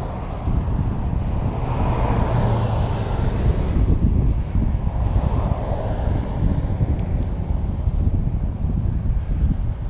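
Traffic passes on a nearby road.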